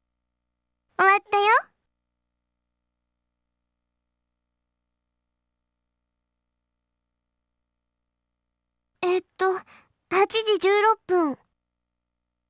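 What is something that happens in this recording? A young girl's voice speaks cheerfully in short lines, close to the microphone.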